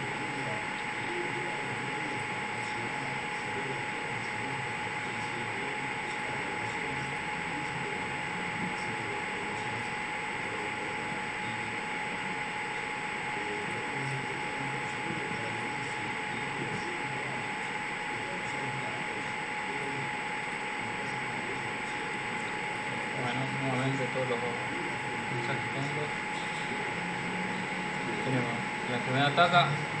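A young man speaks calmly into a microphone.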